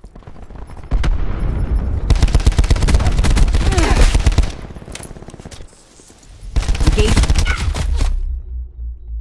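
An automatic rifle fires in bursts.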